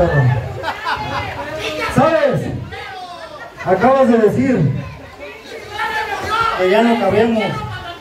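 A man shouts forcefully into a microphone, heard through loudspeakers.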